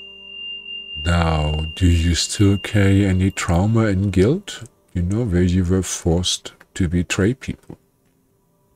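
An elderly man speaks with animation, close to a microphone.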